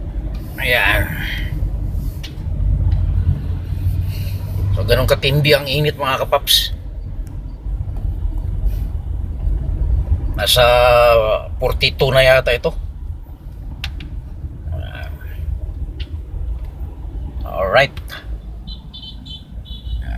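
A car engine hums and tyres rumble steadily on the road from inside the car.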